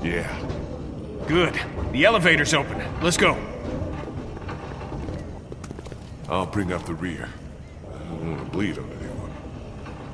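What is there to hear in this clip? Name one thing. A man speaks anxiously, close by.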